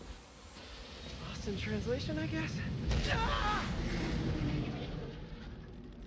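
A jet aircraft hovers overhead with a loud, rumbling roar.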